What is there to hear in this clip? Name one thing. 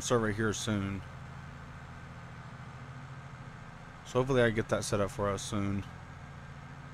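A combine harvester's engine hums steadily.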